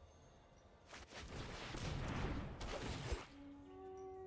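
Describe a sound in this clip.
A soft whoosh sweeps as game cards slide.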